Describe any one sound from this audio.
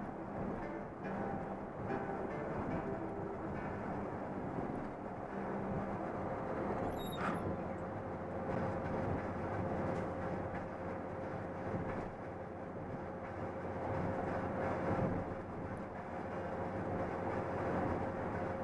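Tyres roar on the highway.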